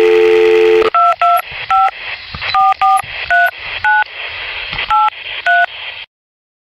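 A phone's keypad beeps as a number is dialed.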